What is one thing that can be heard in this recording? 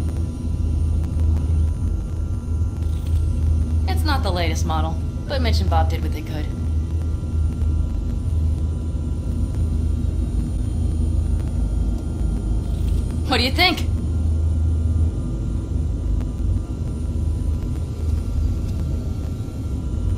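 A vehicle engine hums low and steady.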